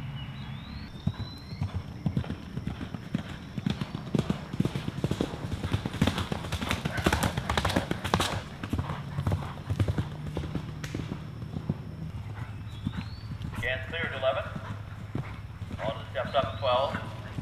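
A horse gallops, its hooves thudding on soft turf.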